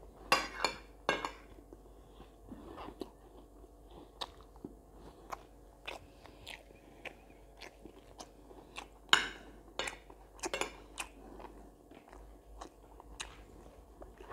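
A metal spoon clinks and scrapes on a ceramic plate.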